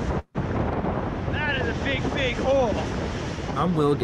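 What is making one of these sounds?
A man speaks loudly over the wind, close to the microphone.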